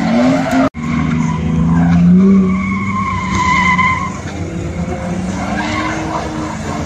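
Tyres squeal loudly as a car drifts.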